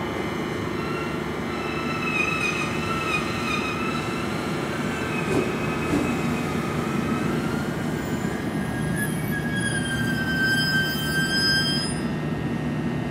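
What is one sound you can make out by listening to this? Train brakes squeal with a high, wavering whine as the train slows to a stop.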